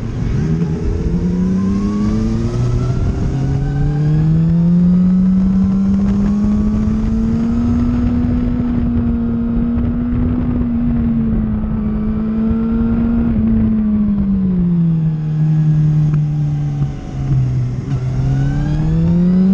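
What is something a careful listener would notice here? A motorcycle engine roars close by, its pitch rising and falling as it speeds up and slows down.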